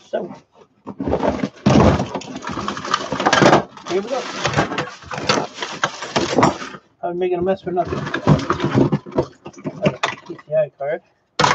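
Tangled cables rustle and scrape as a hand pulls them from a plastic bin.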